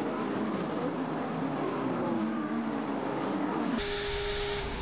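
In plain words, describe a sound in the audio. Racing car engines scream and change pitch as they race past.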